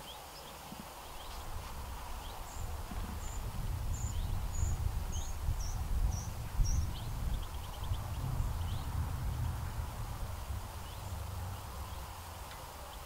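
Wind blows across the microphone outdoors, gusting and then easing.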